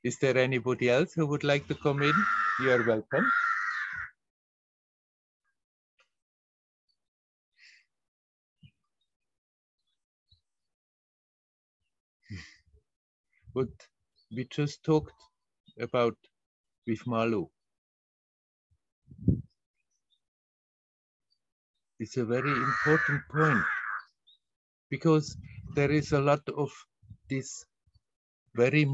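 An elderly man talks calmly over an online call.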